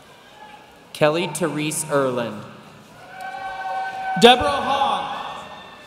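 A man reads out names over a loudspeaker in a large echoing hall.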